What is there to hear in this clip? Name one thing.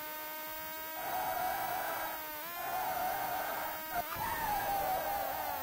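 Tyres screech as a car corners.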